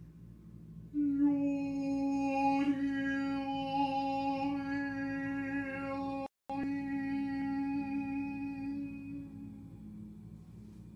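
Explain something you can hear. A woman sings one long, steady note nearby, then lets it fade.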